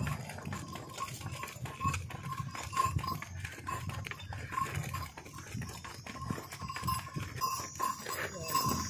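A bull's hooves clop steadily on the ground as it walks.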